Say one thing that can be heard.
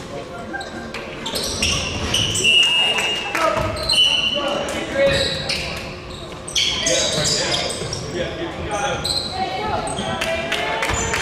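Young players shout to each other across an echoing gym.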